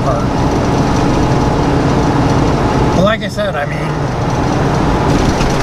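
A truck engine rumbles steadily while driving on a highway.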